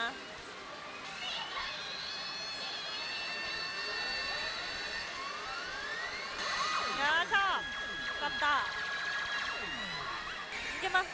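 A gaming machine plays electronic music and chiming tones.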